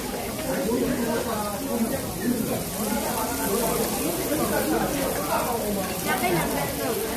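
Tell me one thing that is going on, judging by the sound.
Meat sizzles on a hot grill plate.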